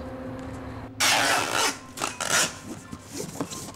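Packing tape rips loudly across a cardboard box in short pulls.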